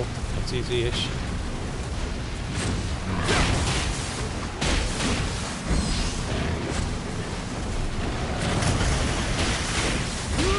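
A burst of fire roars out.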